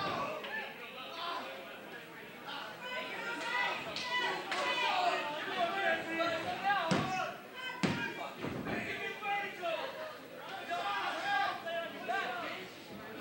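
A crowd of men and women chatters and shouts in a large room.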